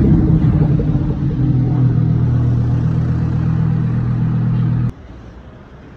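A Lamborghini V10 supercar roars as it accelerates away.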